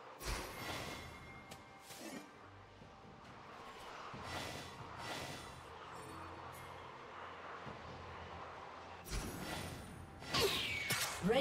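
Spell effects whoosh and clash in a fantasy battle game.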